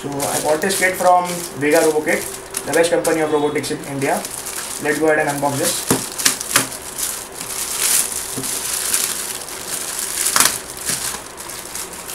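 Plastic wrapping crinkles and rustles as hands handle it.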